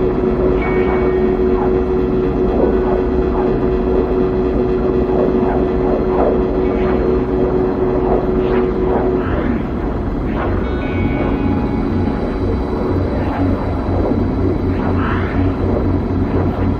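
A spaceship engine roars steadily as it rushes along.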